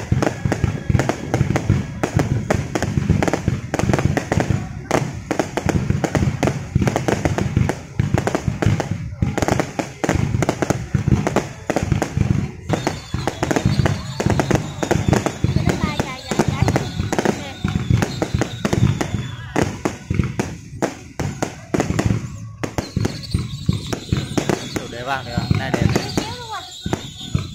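Fireworks boom and crackle rapidly, outdoors.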